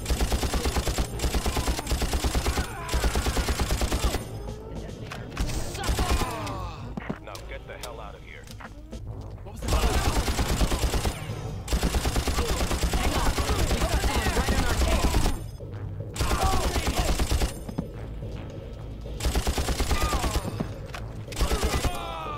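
A machine gun fires rapid bursts, echoing in a hard corridor.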